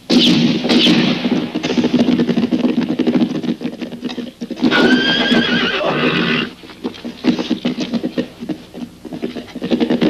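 Horse hooves thud on hard dirt.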